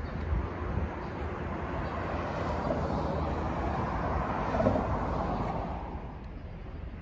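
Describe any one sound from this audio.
Traffic passes by on a nearby road.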